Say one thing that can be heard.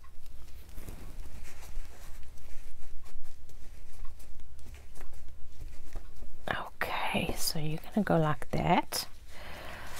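Tissue paper crinkles and rustles.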